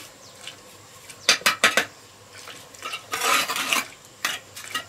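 A trowel scrapes wet mortar.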